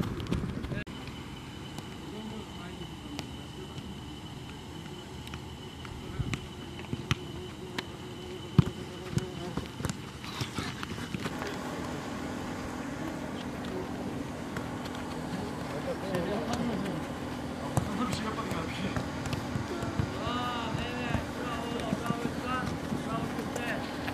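A football is kicked repeatedly with dull thuds.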